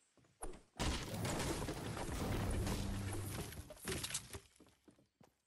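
A pickaxe smashes loudly through a wooden roof.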